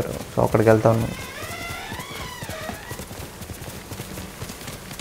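A horse's hooves thud at a gallop.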